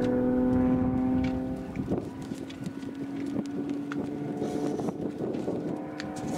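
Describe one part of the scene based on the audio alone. A small propeller plane drones overhead, its engine pitch shifting as it rolls and dives.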